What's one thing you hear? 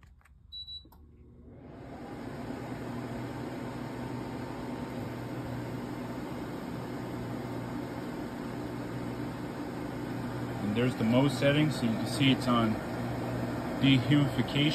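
An air conditioner starts up and hums with a steady whir of its fan.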